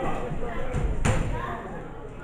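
A wrestler's body slams onto the ring mat with a loud thud.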